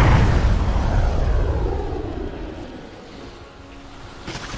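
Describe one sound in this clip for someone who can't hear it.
A magic blast rumbles and whooshes loudly, then slowly fades.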